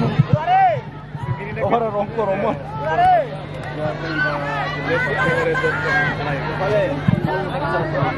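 A crowd of men, women and children chatters and calls out outdoors.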